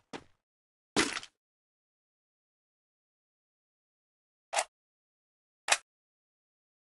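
A gun fires single shots.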